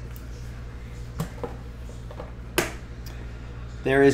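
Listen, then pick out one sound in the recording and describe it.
A plastic card case clicks and taps in hands.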